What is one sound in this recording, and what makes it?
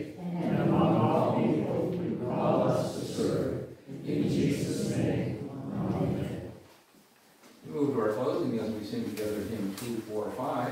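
An organ plays along with the singing.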